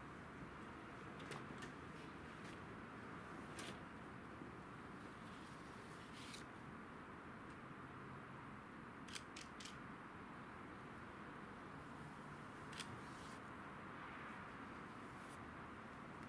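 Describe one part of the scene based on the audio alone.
Hands rub and brush against paper on the ground, with soft scraping sounds.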